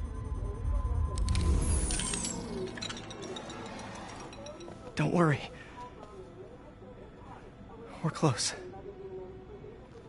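A young man speaks anxiously, close by.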